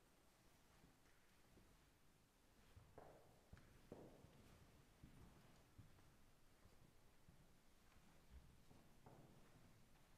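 Footsteps shuffle softly across the floor.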